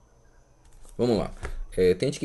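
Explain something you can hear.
A man speaks close to the microphone with animation.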